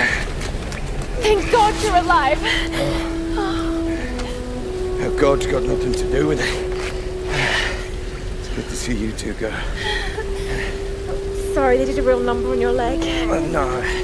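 A young woman speaks breathlessly and with relief.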